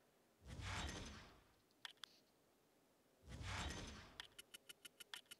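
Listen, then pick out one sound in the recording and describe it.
A whoosh sweeps past.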